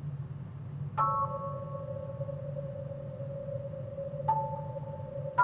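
A bright chime rings out from a video game.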